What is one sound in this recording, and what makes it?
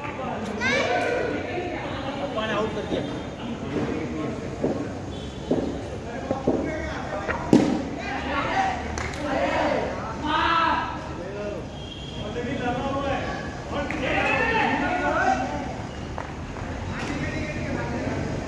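Young men talk and call out to each other nearby, outdoors.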